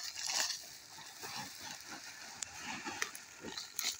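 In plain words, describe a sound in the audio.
Fertiliser granules pour from a sack and patter onto the soil.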